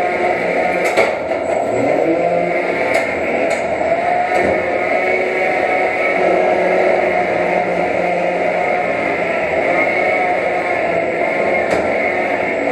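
Small robots clank against each other and the arena walls.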